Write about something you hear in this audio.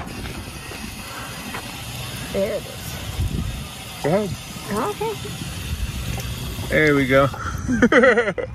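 Water from a drinking fountain splashes into a metal basin.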